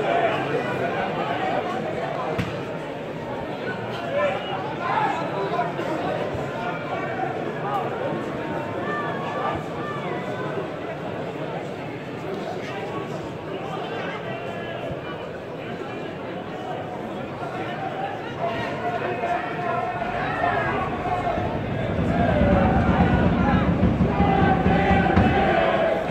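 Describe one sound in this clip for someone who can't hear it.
A crowd of spectators murmurs and chatters nearby.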